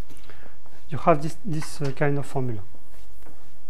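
A young man speaks briefly with a raised voice.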